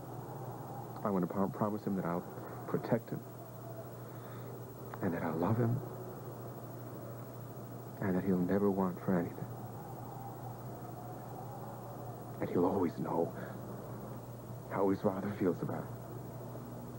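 A man speaks intently, close by.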